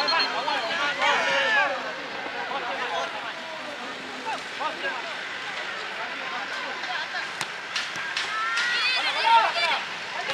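Boys shout to each other across an open field.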